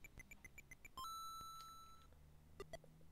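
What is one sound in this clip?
A retro video game chime rings out in a single held electronic tone.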